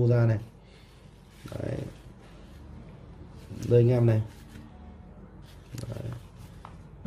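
A phone plays a short notification tone several times.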